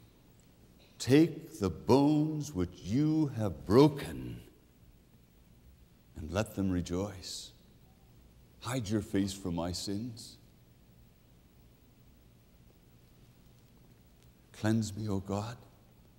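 A middle-aged man speaks clearly and expressively into a microphone, with pauses between phrases.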